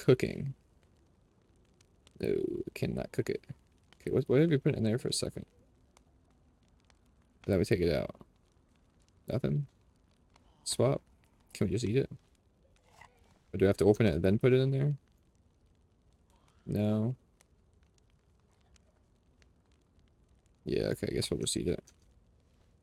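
A young man talks casually and with animation into a close microphone, in short bursts.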